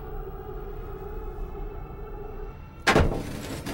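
A tank engine rumbles and its tracks clatter as it passes close by.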